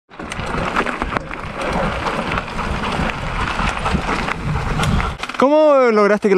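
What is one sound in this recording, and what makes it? Bike tyres roll and rattle over a dirt trail.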